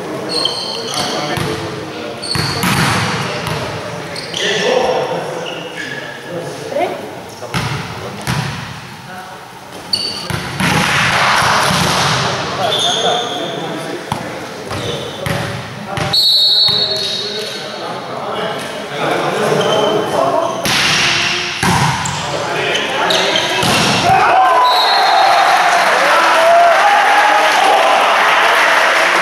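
Young men shout and call out to each other.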